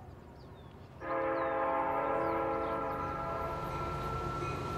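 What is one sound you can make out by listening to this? Train wheels screech loudly and steadily on the rails.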